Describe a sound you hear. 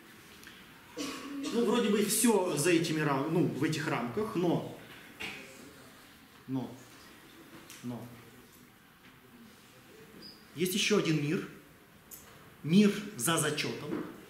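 A middle-aged man lectures with animation in a room with slight echo.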